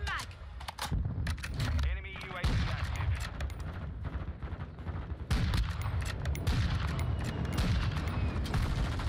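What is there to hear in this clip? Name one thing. Rifle shots crack in quick bursts.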